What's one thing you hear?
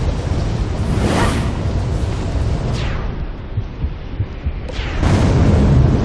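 A fireball whooshes past and bursts with a loud blast.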